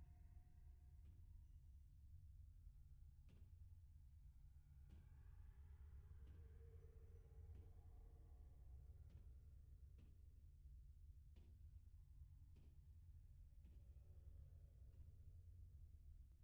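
Footsteps clank on a metal grating floor.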